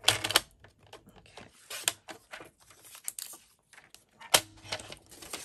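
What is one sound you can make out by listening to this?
A paper trimmer blade slides and cuts through card.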